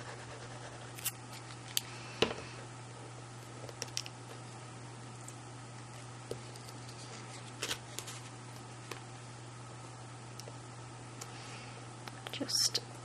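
Paper pieces tap and rustle softly as they are handled.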